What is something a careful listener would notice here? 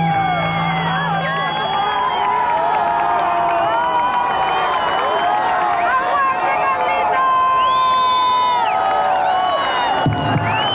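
A live band plays amplified music loudly through speakers.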